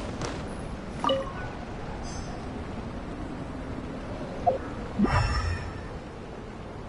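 A beacon chimes brightly as it lights up.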